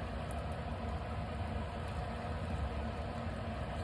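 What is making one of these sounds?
Liquid egg pours into a pan.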